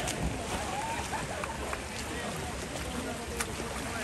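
Water splashes as swimmers move off a wall.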